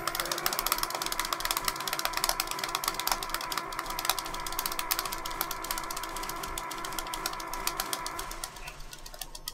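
An electric machine buzzes and crackles rapidly.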